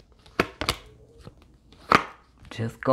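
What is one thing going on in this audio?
Cards slap and flick as they are handled.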